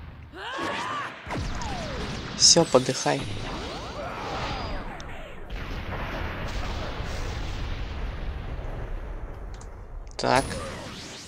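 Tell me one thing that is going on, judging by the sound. A huge energy blast roars and rumbles.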